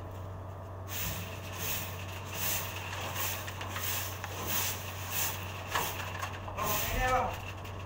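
A stiff broom scrapes and sweeps across a metal floor.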